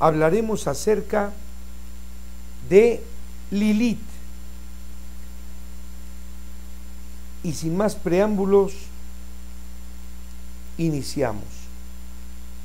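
An elderly man speaks calmly into a nearby microphone, in short phrases with pauses.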